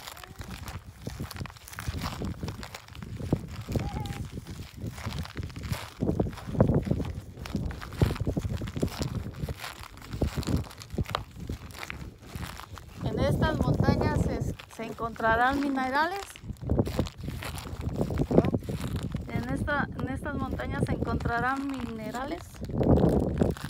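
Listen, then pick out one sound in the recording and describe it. Footsteps crunch on loose gravel and dry grass.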